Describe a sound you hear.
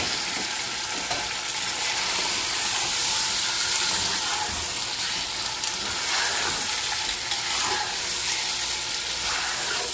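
A spatula scrapes and stirs against the pot.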